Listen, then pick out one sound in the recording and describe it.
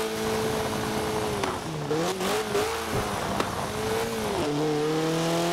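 An engine drops in pitch and crackles as the car slows down hard.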